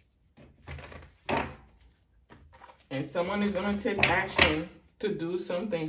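Playing cards shuffle with soft flicking.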